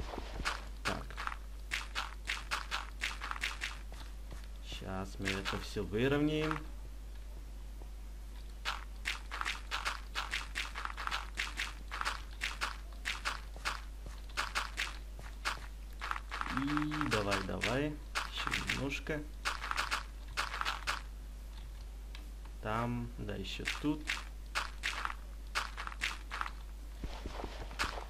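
Dirt blocks are placed one after another with quick soft crunching thuds.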